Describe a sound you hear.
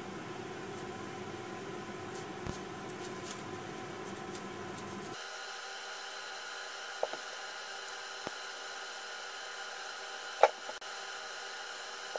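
A knife scrapes and peels the skin off a tomato.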